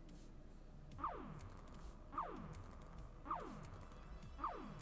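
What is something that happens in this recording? Falling tiles sound quick descending chimes, again and again.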